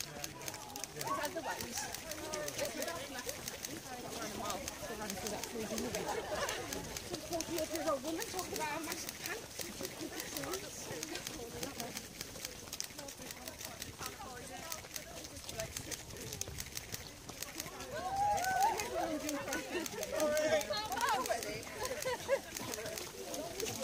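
Many runners' feet pound on soft ground close by.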